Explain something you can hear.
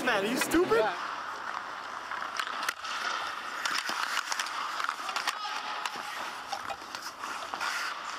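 Ice skates scrape and carve across ice.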